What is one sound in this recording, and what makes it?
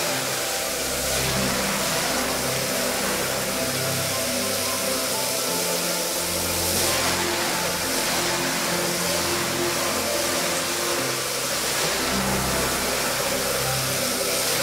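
A pressure washer wand sprays a jet of water onto a soaked rug.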